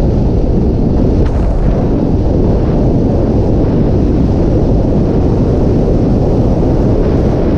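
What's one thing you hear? A motorcycle engine rumbles steadily as the bike rides along.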